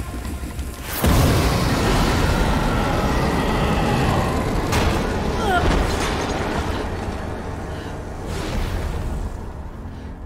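Fire roars loudly.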